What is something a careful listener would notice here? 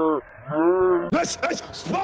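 A man shushes softly.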